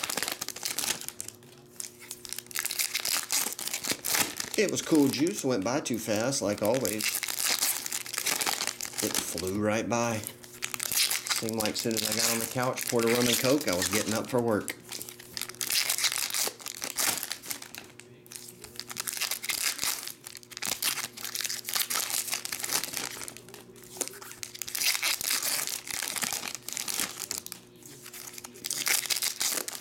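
Foil wrappers crinkle and rustle close by.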